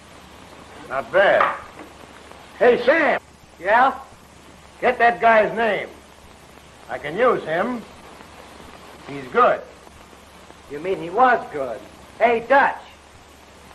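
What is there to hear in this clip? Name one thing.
A man shouts loudly and forcefully.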